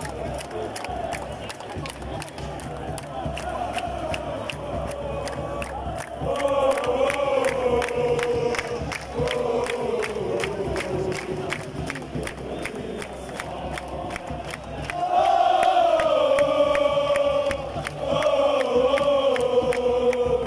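Fans clap their hands in a steady rhythm.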